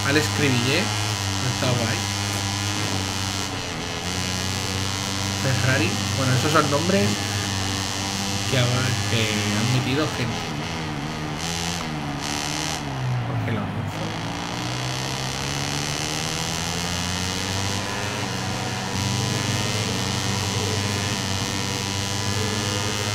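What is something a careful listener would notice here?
A motorcycle engine roars, dropping in pitch as it slows and then rising as it speeds up through the gears.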